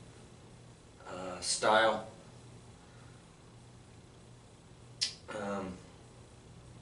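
A man speaks in short, calm phrases close by.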